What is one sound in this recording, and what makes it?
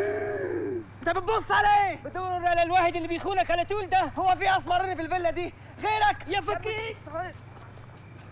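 A young man talks back loudly.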